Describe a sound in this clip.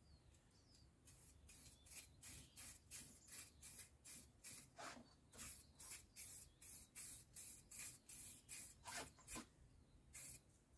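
A brush scrubs back and forth in a quick steady rhythm.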